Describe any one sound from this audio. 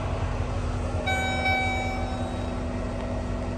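An electronic tone beeps briefly.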